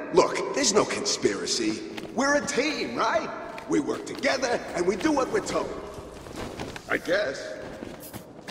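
A man talks calmly, close to a microphone.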